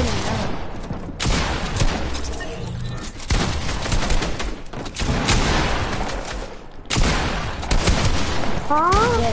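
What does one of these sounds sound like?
Gunshots and building sounds from a video game play in quick bursts.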